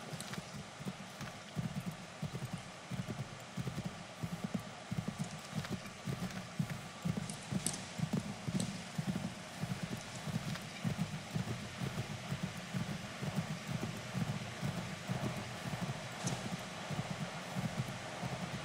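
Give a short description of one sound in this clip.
A horse's hooves pound steadily at a gallop.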